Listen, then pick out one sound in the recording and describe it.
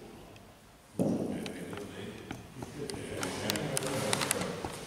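A ball thuds onto a carpeted court and rolls.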